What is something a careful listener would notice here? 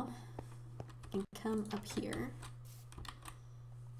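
A wooden door opens with a knock.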